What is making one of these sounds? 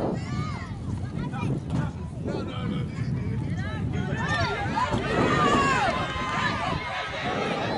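A crowd of young voices and adults shouts and cheers excitedly nearby.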